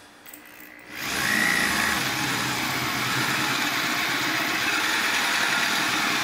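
An electric drill whirs steadily.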